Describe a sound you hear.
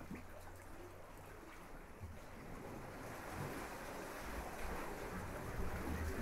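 Small waves wash gently onto a beach.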